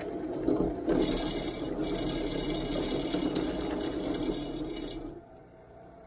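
A drill bit grinds and screeches into metal.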